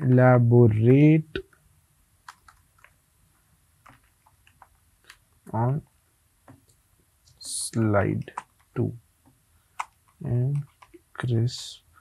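Keys clatter on a keyboard.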